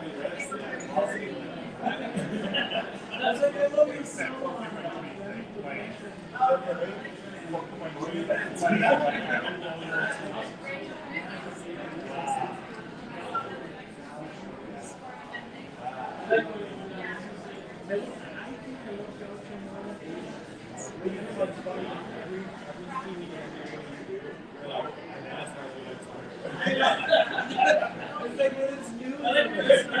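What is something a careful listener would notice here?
Several adults talk and chatter in a room.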